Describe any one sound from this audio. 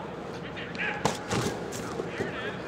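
A football player thumps down onto a padded mat.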